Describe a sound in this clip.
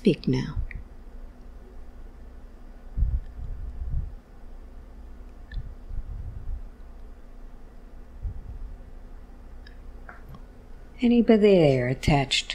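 A woman breathes slowly and deeply close to a microphone.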